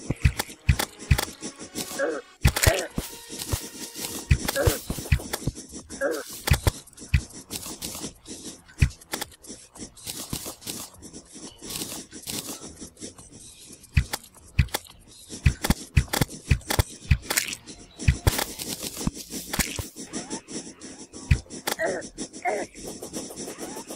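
Sharp, quick hits crack again and again.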